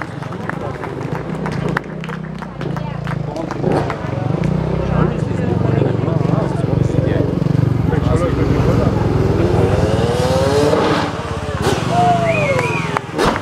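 Motorcycle engines roar and rev loudly.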